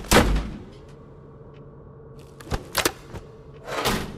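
A switch clicks on an electrical panel.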